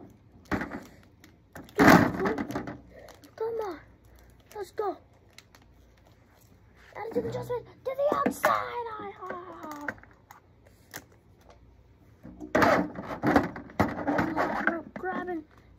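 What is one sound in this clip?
Plastic toy figures knock and clatter together.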